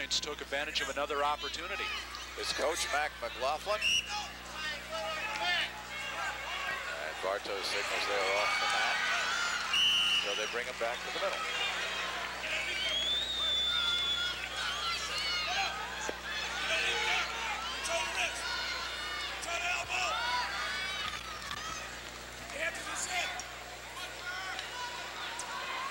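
A crowd shouts and cheers in a large echoing hall.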